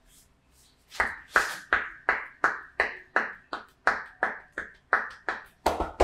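Hands rhythmically chop and pat on a man's neck and shoulders.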